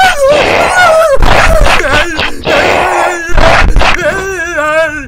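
A young man screams loudly and close up.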